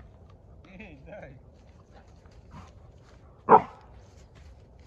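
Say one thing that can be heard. A man calls out loudly to a dog outdoors.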